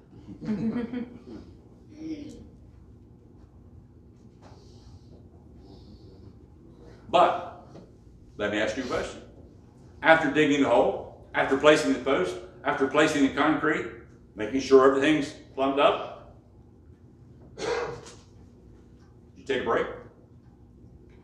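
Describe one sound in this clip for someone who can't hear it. An older man preaches with animation in a reverberant room, pausing between phrases.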